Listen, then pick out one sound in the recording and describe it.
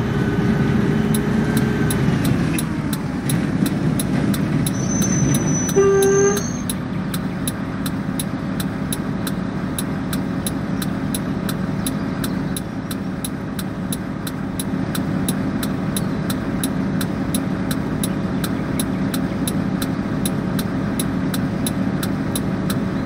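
A bus engine hums, slows down and then idles with a low drone.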